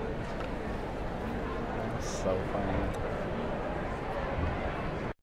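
A large theatre audience applauds and cheers loudly.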